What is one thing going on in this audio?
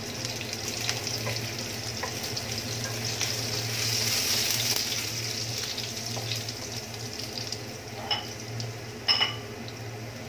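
A wooden spatula scrapes and taps against a pan.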